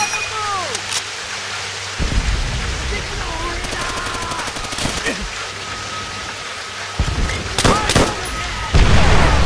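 Rain pours steadily outdoors.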